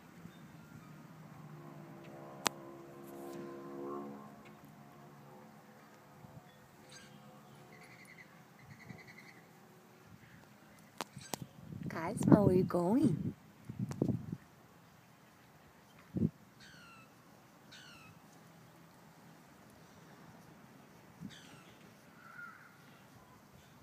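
A small animal rustles softly through short grass.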